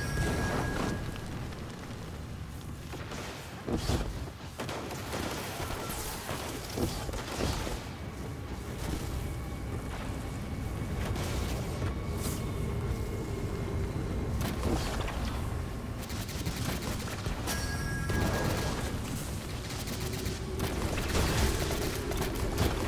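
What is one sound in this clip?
Footsteps crunch quickly over loose gravel and rock.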